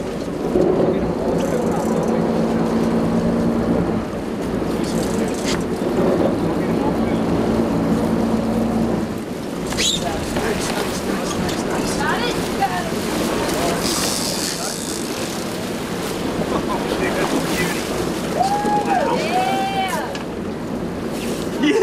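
Water splashes against a boat hull.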